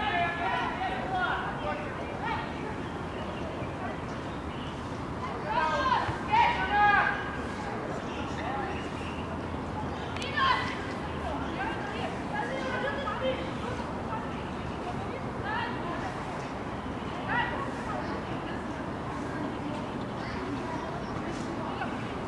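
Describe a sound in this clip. Young women shout to each other across an open field, far off.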